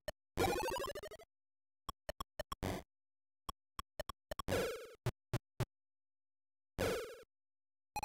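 A short chiptune jingle sweeps upward.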